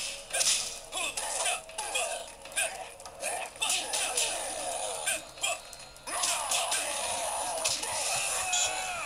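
Punches and kicks from a fighting video game thud and crack through a small speaker.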